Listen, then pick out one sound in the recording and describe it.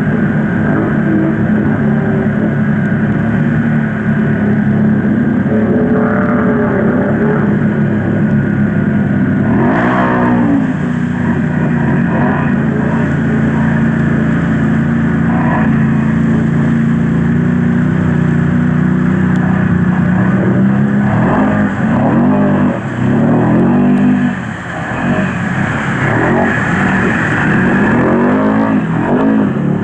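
Water splashes and sprays as quad bikes plough through it.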